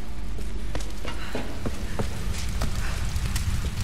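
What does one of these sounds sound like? Footsteps crunch on gravel and debris.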